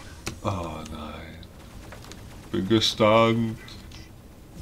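A man talks with animation, close to a headset microphone.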